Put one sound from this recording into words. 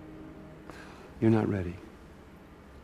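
A man answers quietly and firmly.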